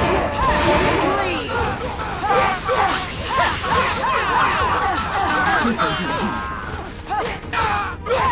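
Swords slash and strike.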